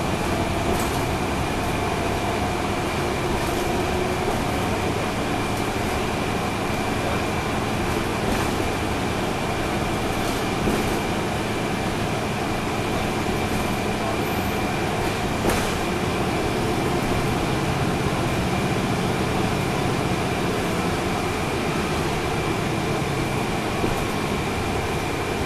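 A vehicle rumbles steadily along the road, heard from inside.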